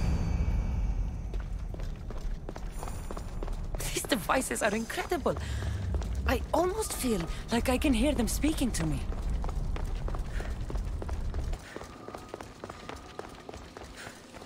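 Footsteps patter quickly on stone floors.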